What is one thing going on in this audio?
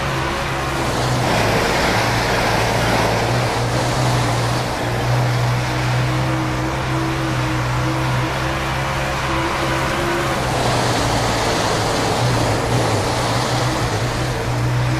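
Tyres skid and scrape over loose dirt.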